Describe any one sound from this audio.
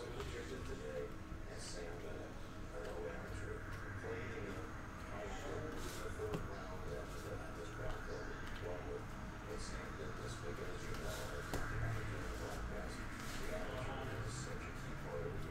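Trading cards shuffle and flick against each other.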